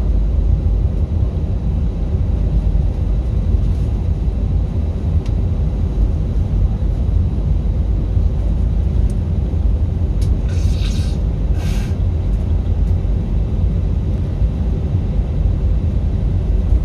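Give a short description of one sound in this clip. An aircraft's engines roar steadily from inside the cabin as the plane rolls along the runway.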